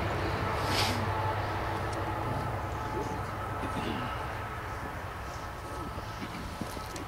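A man speaks calmly to a gathering outdoors, heard from a distance.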